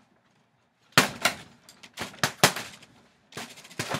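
Fists thud hard against a heavy punching bag in quick bursts.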